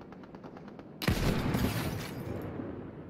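A rifle fires a single loud, sharp shot.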